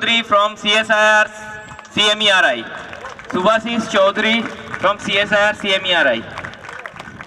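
A man speaks loudly and with animation through a microphone and loudspeakers, outdoors.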